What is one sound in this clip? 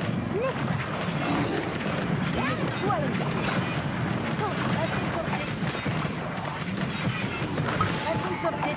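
Magic blasts whoosh and burst.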